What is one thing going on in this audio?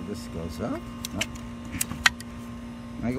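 A plastic part clicks and knocks as it is fitted onto a hose reel.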